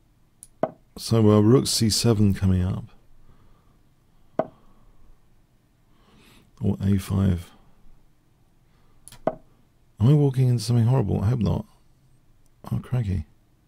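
A middle-aged man speaks in short bursts through a close microphone.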